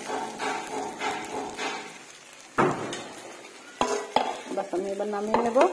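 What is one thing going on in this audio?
A plastic fork scrapes and taps against a plate of food.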